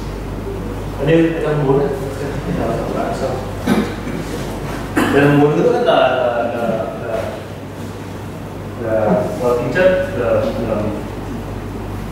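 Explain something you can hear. A man lectures in a calm voice.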